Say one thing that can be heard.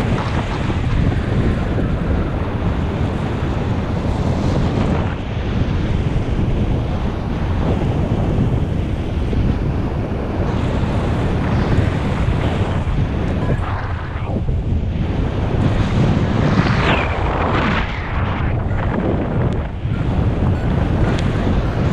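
Strong wind rushes and buffets loudly.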